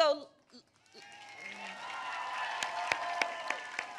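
A crowd cheers and applauds.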